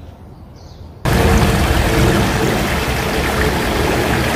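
A shallow stream splashes and gurgles over rocks nearby.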